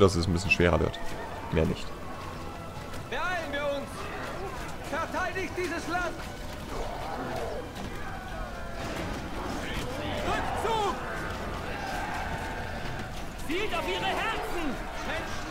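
Swords and shields clash in a large battle.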